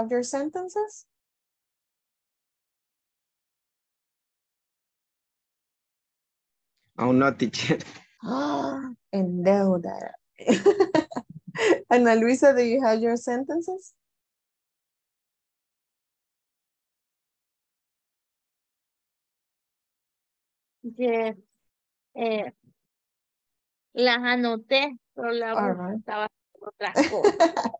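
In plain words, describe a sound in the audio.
A young woman speaks cheerfully over an online call.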